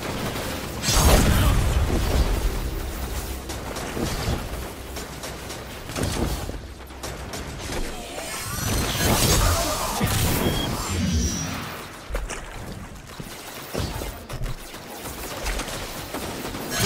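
Energy weapons fire and crackle in bursts.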